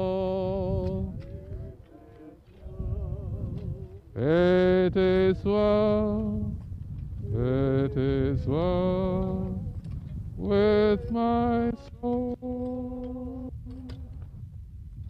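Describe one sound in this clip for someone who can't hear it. A group of mourners sings a slow hymn outdoors.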